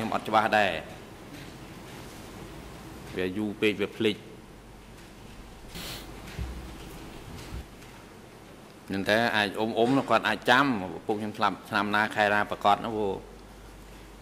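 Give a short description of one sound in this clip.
A middle-aged man speaks calmly into a microphone, pausing between phrases.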